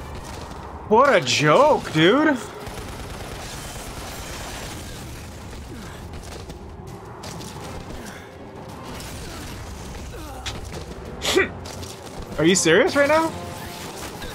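A young man exclaims loudly close to a microphone.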